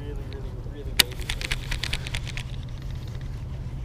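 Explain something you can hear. A fishing reel clicks and ratchets as its handle is turned.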